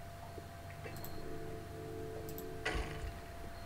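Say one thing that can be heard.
A game plays a short chime as a building is placed.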